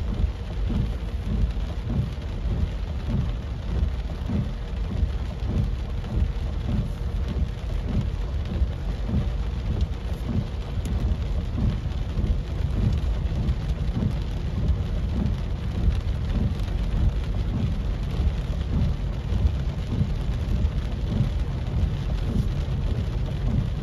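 Tyres splash through water on a flooded road.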